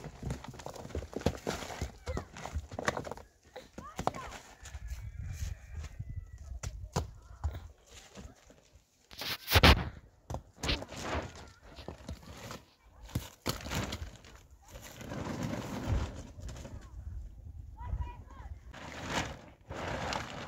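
Footsteps crunch on snowy, rocky ground.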